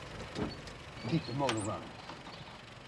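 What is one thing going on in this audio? A man speaks briefly inside a car.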